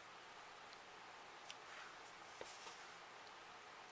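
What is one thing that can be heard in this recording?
Paper rustles softly as hands press it flat.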